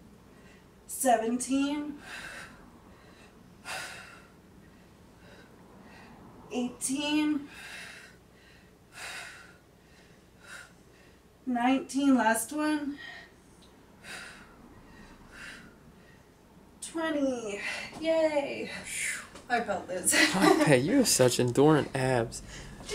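A woman speaks cheerfully and a little breathlessly, close by.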